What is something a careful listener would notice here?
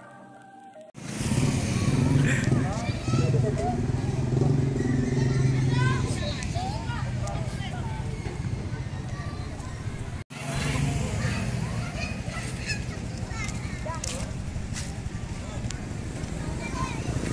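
A motorbike engine idles close by.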